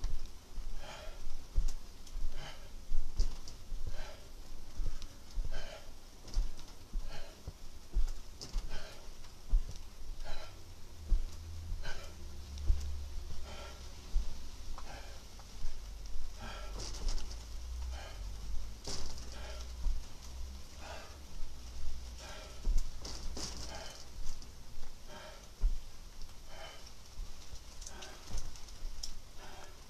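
Bare feet thump rhythmically on a soft mattress.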